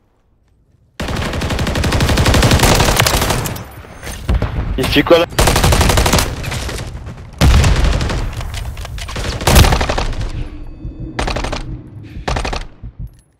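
Rapid gunfire rattles in short loud bursts.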